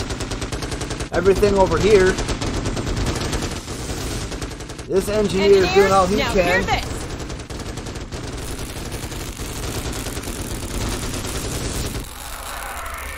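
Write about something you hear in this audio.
Rapid gunfire rattles amid a battle.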